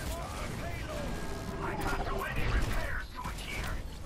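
Explosions burst close by.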